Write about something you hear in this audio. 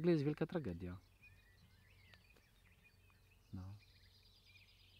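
A man speaks calmly close to the microphone.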